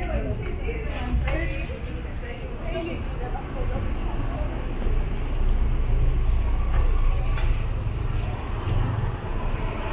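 Car engines idle nearby in slow traffic.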